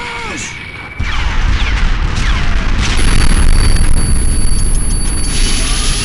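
A second explosion booms and rumbles.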